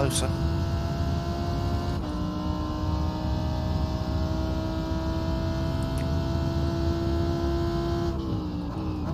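A racing car engine roars at high, steady revs.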